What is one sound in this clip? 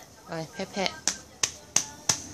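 A hand pats softly on a child's leg.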